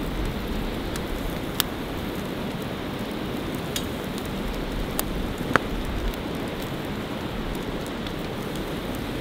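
Flames roar softly in a small stove.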